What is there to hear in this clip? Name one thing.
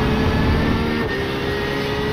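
A racing car's engine pitch drops briefly as the gear shifts up.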